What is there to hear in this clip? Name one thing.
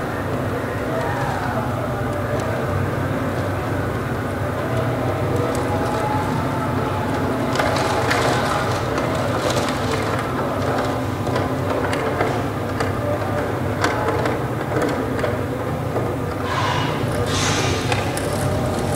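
A plucked zither plays a slow melody in a large, echoing hall.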